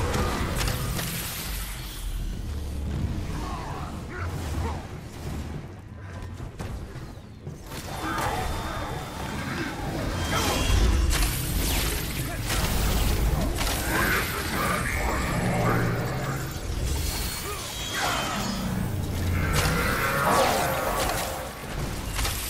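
Heavy impacts boom and rumble.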